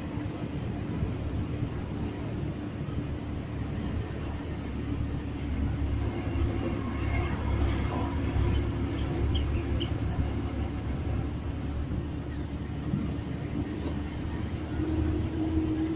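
Wind rushes past an open bus window.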